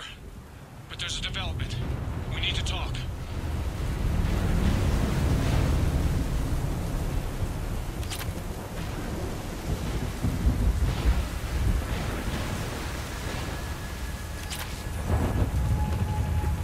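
A deep wind rumbles steadily.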